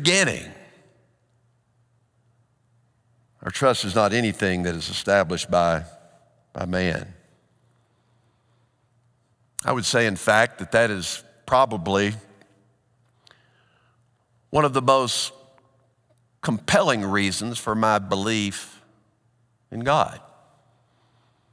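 A middle-aged man speaks slowly and deliberately through a headset microphone, with pauses, in a reverberant hall.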